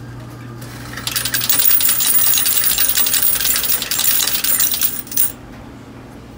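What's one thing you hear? Coins clatter loudly into a metal tray.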